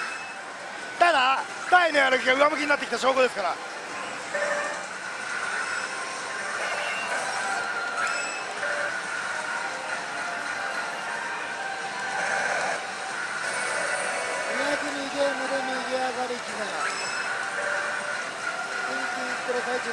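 A slot machine plays electronic music and chimes.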